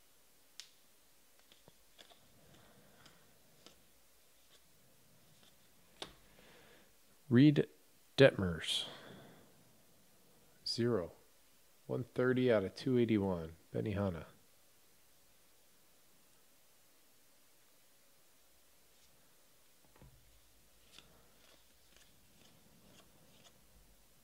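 Trading cards rustle and flick softly as hands sort through them.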